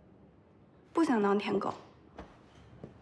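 A second young woman answers calmly, close by.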